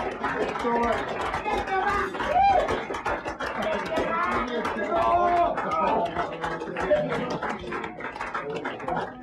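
A crowd cheers and yells close by.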